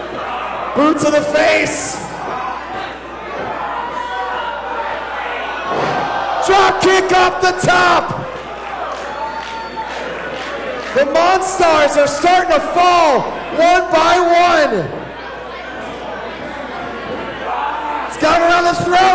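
A crowd cheers and shouts throughout in an echoing hall.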